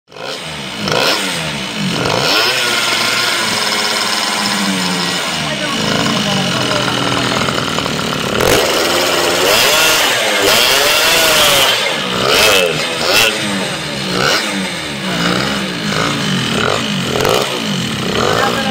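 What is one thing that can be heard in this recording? A scooter engine idles and revs up and down close by.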